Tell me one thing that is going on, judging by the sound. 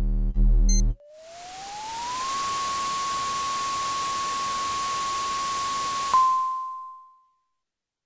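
A machine hisses steadily with a rising whine.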